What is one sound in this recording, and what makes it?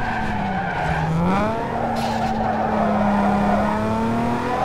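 Tyres screech as a car slides through a turn.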